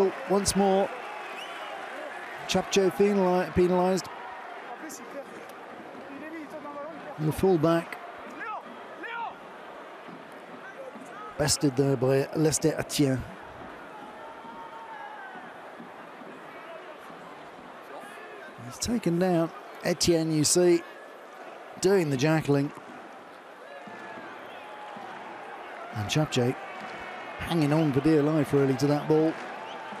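A stadium crowd murmurs steadily in the open air.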